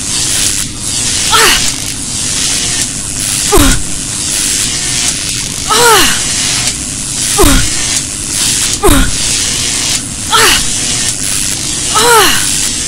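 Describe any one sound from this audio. Electricity crackles and hisses steadily.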